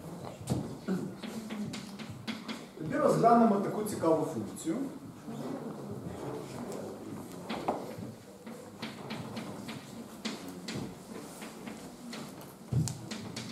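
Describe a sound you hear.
A man speaks calmly into a microphone, heard in an echoing room.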